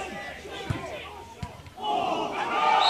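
Players shout to each other across an open pitch, heard from a distance.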